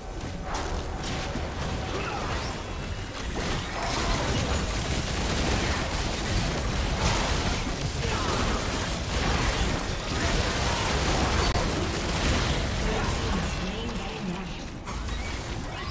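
Magic spell effects whoosh and burst during a busy video game battle.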